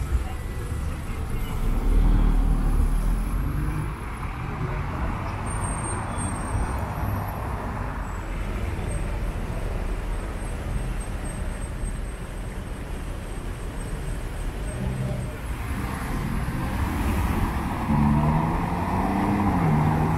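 A sports car's engine rumbles deeply nearby.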